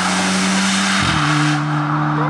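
A rally car's engine briefly drops in pitch as it shifts gear.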